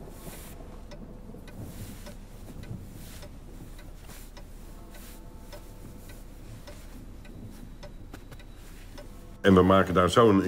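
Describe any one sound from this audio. Paper rustles softly as it is unwrapped.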